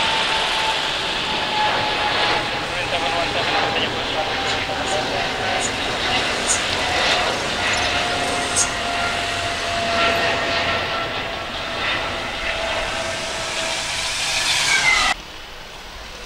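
A jet airliner roars loudly overhead as it climbs away.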